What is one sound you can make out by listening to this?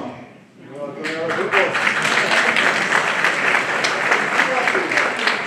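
A brass band starts playing.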